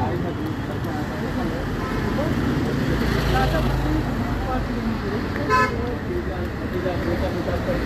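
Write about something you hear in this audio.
Traffic rumbles past on a road outdoors.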